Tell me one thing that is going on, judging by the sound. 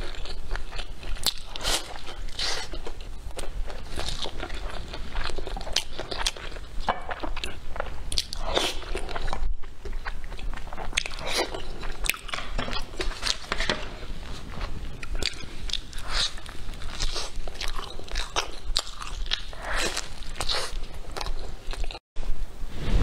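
A young woman chews and crunches food close to a microphone.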